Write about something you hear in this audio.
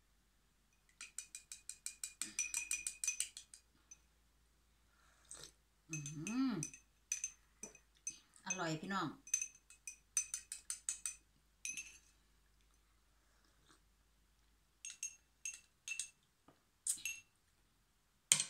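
A spoon clinks rapidly against a small glass.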